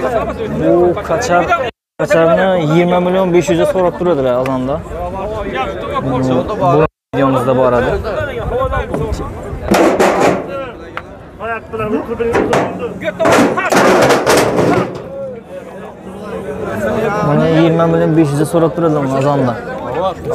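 A man talks loudly and animatedly close by.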